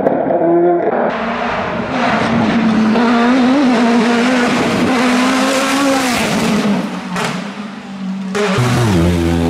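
A racing car engine roars loudly as the car speeds past.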